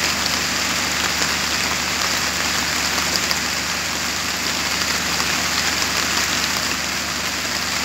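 Heavy rain pours onto standing water and leaves.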